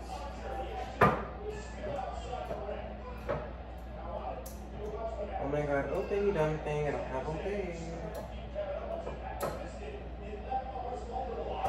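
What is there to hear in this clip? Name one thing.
Utensils clink and knock on a pan.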